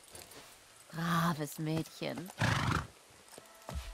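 A horse whinnies close by.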